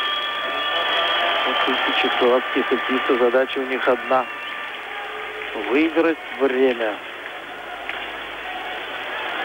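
A large crowd murmurs in an arena.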